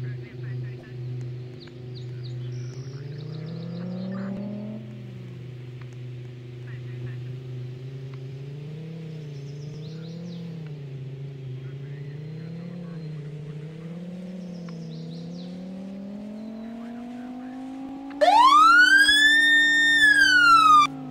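A car engine hums and rises in pitch as the car speeds up.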